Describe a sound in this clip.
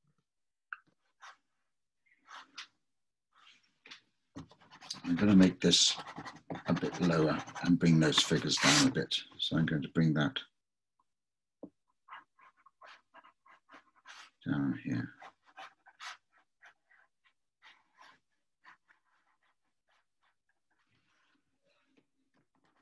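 A pen scratches lightly across paper.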